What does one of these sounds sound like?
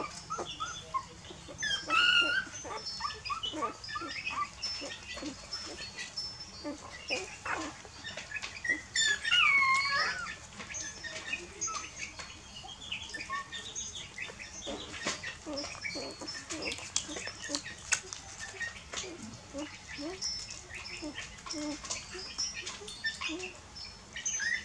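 Puppies suckle and smack noisily.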